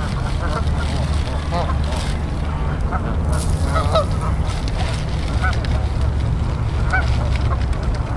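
Geese honk and call near the water.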